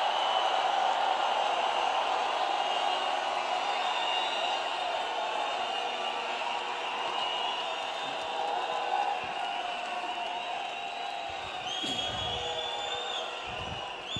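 A large crowd cheers and shouts in a big echoing arena, slowly quieting down.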